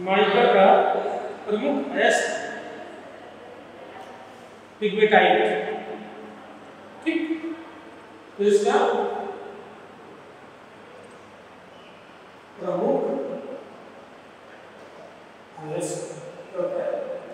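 A man speaks calmly in short phrases in an echoing room.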